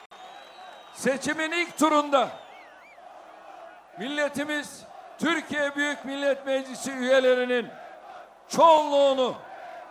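An elderly man speaks forcefully into a microphone over loudspeakers.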